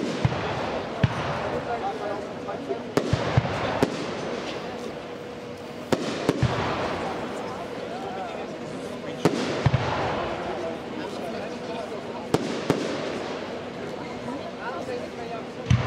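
Fireworks burst with loud booms and bangs.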